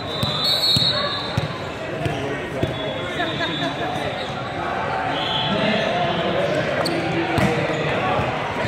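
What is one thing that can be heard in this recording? Voices of players and spectators chatter and call out in a large echoing hall.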